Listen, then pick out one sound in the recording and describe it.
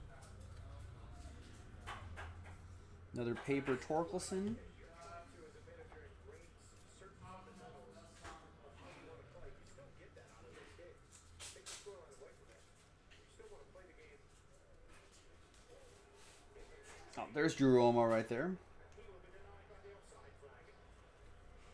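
Cards shuffle and flick between fingers.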